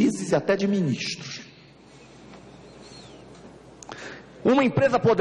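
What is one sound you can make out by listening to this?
A middle-aged man speaks forcefully into a microphone, with pauses.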